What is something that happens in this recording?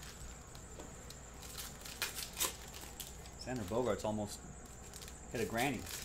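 Card packs rustle and crinkle as hands handle them.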